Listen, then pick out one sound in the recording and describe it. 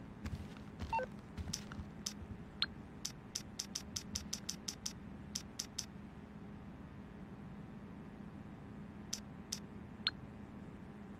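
A phone's buttons click quickly as they are pressed.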